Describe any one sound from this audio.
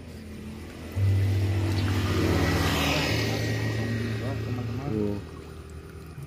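Water splashes and drips as a trap is pulled out of the water.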